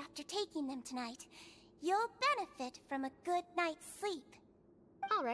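A young girl speaks softly and sweetly.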